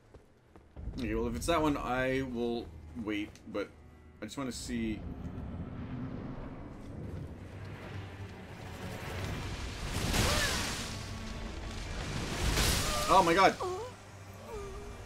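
A man talks with animation into a close headset microphone.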